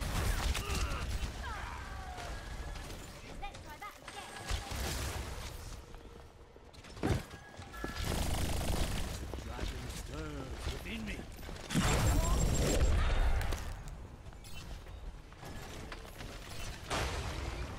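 Gunfire rattles nearby.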